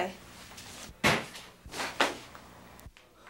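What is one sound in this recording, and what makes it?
A door swings open with a thud.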